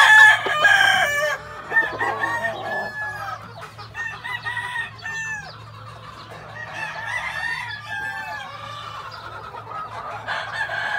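A rooster clucks softly.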